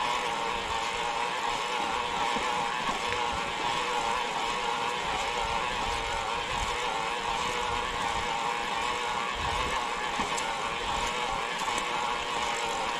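An electric bike motor whines steadily.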